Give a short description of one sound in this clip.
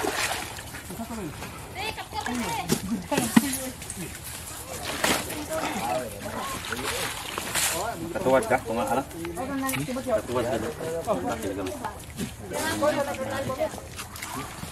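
Water splashes as a man wades through a stream.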